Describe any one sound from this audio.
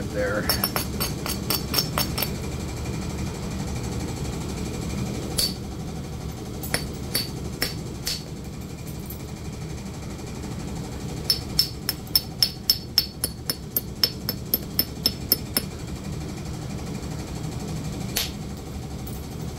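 A rotary power tool whirs steadily up close.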